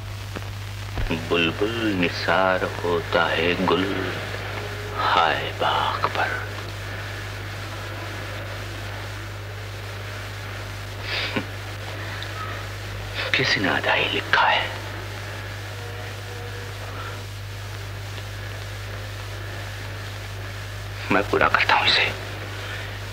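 A man speaks softly and with feeling, close by.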